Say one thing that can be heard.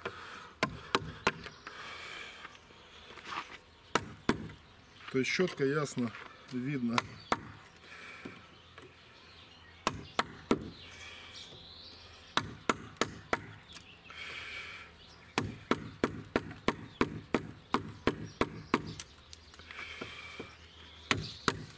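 A mallet knocks sharply on a chisel, again and again.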